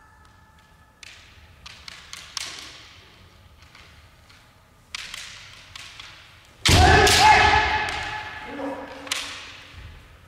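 Bamboo swords clack together in quick strikes.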